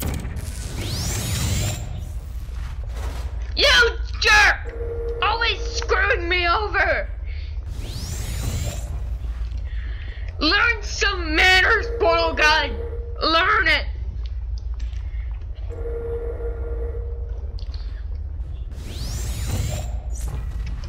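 A science-fiction gun fires with a rising, swooshing zap.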